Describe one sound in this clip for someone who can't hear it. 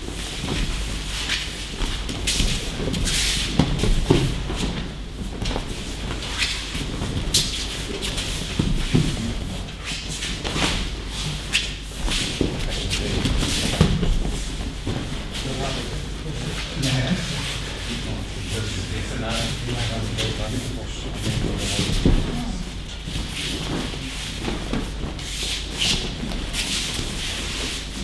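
Bodies thud onto mats again and again in a large echoing hall.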